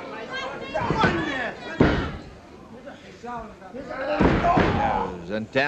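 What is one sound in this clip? A body thuds heavily onto a ring mat.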